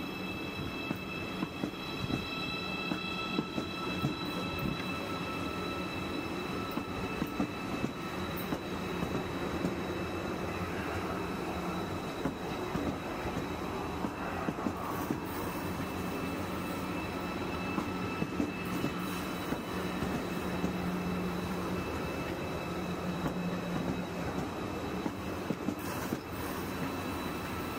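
A high-speed train rolls steadily past close by, its wheels rumbling and clicking over the rail joints.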